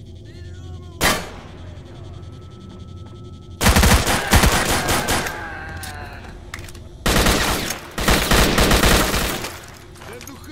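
A gun fires loud single shots and rapid bursts.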